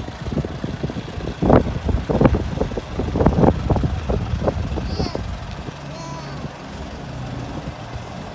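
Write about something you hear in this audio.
A backhoe loader's tyres crunch over gravel.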